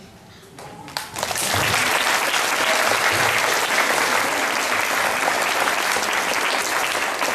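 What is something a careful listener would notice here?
A crowd of children claps and cheers loudly.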